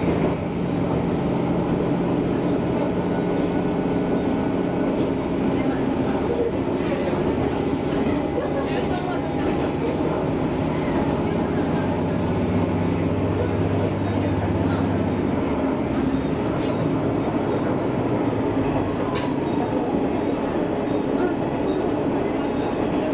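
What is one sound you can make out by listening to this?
A train rumbles and hums steadily along the tracks, heard from inside a carriage.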